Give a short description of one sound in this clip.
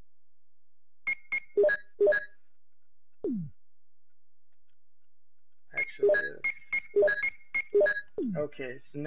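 Short electronic beeps sound as menu items are selected.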